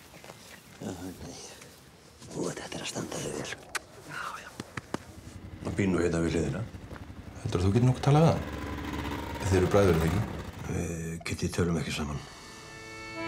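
An elderly man speaks softly and warmly, close by.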